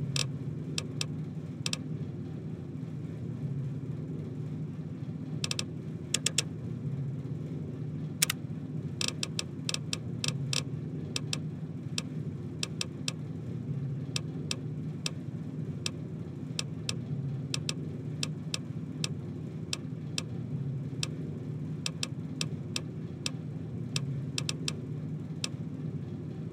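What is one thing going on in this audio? Short game menu clicks tick as a list is scrolled through.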